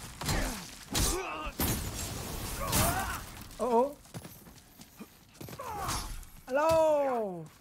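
Men grunt and cry out in pain.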